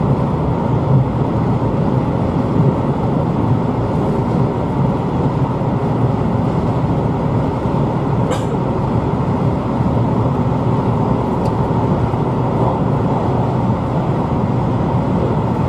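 A train rumbles steadily along the tracks, heard from inside the carriage.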